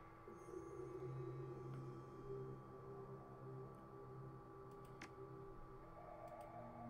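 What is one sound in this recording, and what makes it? Calm electronic game music plays steadily.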